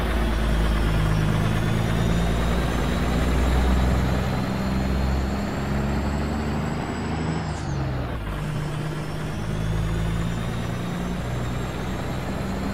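A diesel semi-truck engine rumbles as it pulls trailers at low speed.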